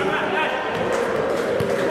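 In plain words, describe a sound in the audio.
A player kicks a futsal ball in a large echoing hall.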